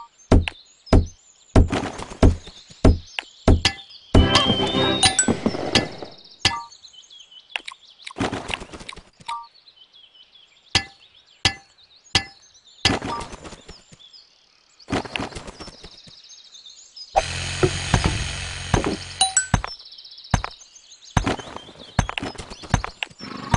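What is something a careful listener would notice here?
Short game clicks and chimes sound again and again.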